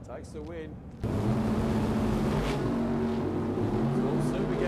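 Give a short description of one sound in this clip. A race car engine idles with a loud, deep rumble.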